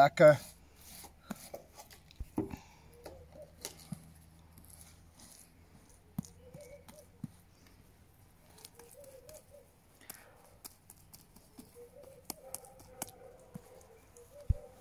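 A paintbrush brushes softly across a rough surface.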